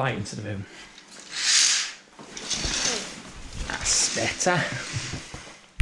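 Curtains swish as they are pulled open.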